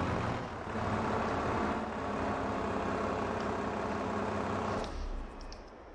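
A tractor engine runs with a steady rumble.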